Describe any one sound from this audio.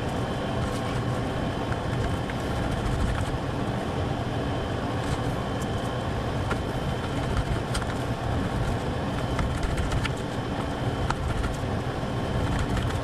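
A knife scrapes and taps against a plate.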